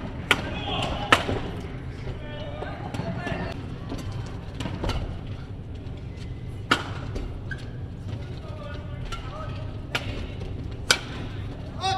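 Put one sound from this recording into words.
Badminton rackets strike a shuttlecock in an indoor hall.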